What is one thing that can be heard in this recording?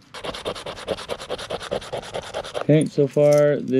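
A coin scratches rapidly across a card.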